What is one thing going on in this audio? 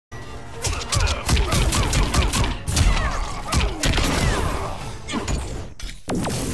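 Punches and kicks land with heavy thuds in a video game fight.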